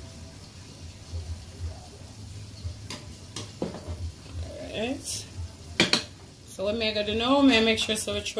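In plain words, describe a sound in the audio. A spoon stirs and scrapes through rice in a metal pot.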